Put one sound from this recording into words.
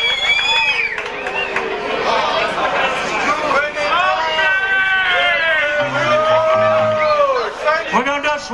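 A live band plays loudly.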